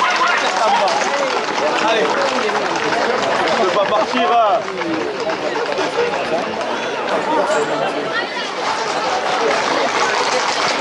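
A crowd of men and women shout and cheer outdoors.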